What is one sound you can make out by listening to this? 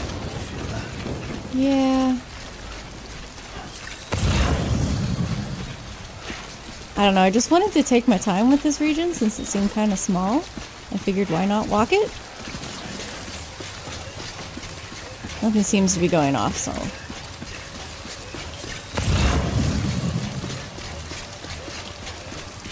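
Heavy footsteps crunch on gravel and rubble.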